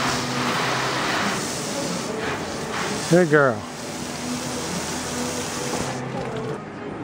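A garden hose sprays water onto a horse's coat with a steady hiss.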